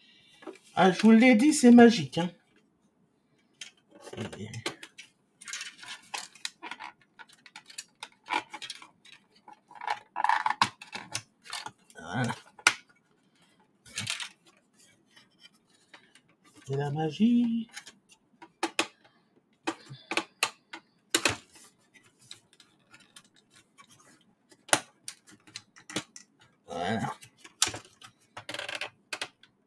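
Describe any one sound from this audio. Plastic parts click and clatter as hands handle a device.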